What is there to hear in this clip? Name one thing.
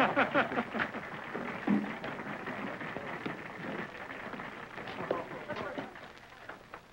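A crowd of men murmurs and chatters in a room.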